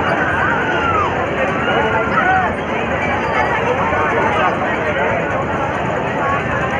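A large crowd chatters loudly outdoors, with many voices overlapping.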